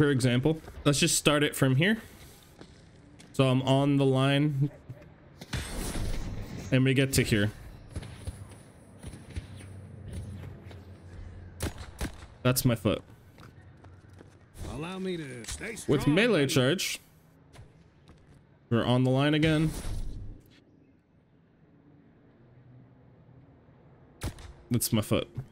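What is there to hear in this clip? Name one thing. A crossbow fires with sharp twangs.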